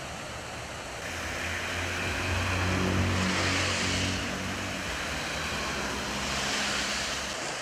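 Fountain jets splash steadily into a pool outdoors.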